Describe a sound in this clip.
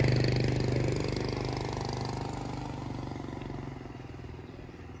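A motorbike engine hums nearby and fades away.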